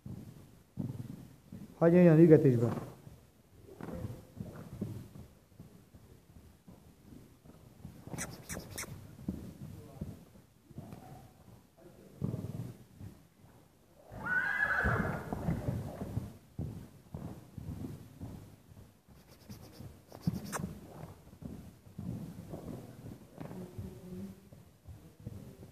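A horse's hooves thud softly on sand as it canters.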